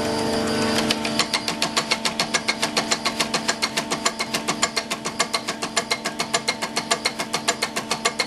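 A diesel injection pump on a test bench clatters in a fast, even rhythm.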